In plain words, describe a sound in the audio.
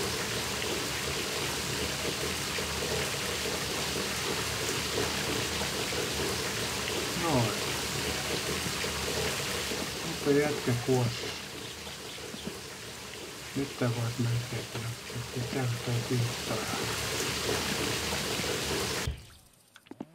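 Water sprays steadily from a shower.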